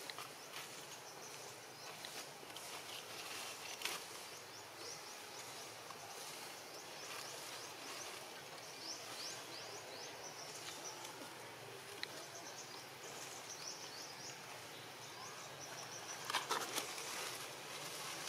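A monkey's fingers rustle softly through fur.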